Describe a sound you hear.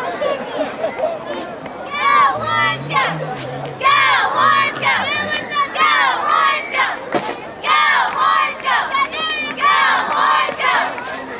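Young people on the sideline shout and cheer excitedly nearby.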